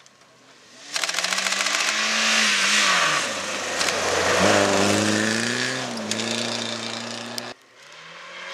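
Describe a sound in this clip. A rally car engine roars as it approaches at speed and revs.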